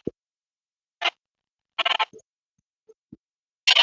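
A game's interface plays short electronic chimes.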